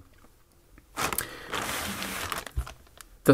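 A plastic bag crinkles and rustles under hands.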